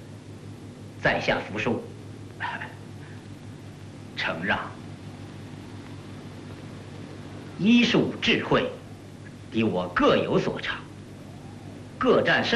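A second man speaks calmly in reply.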